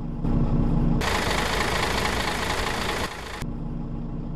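Bus doors release a loud burst of air.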